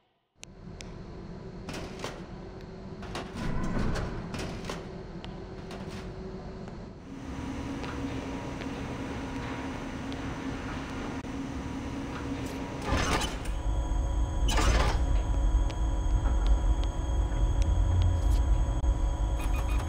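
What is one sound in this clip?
Quick footsteps run across a hard floor.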